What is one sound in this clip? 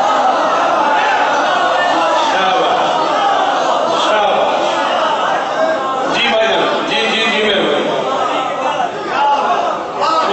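A man speaks loudly and with passion into a microphone, heard through a loudspeaker in an echoing hall.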